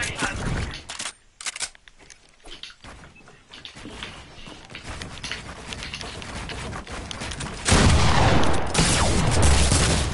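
Wooden walls and ramps are built with quick clattering knocks in a video game.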